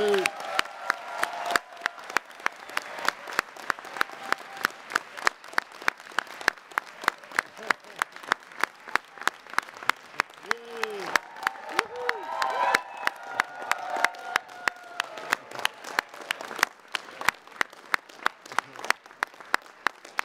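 A man claps his hands steadily and quickly, close by.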